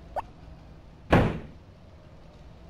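A door slides open with a short whoosh.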